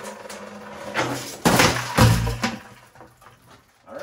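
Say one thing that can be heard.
Metal ducting clanks and rattles as it is handled.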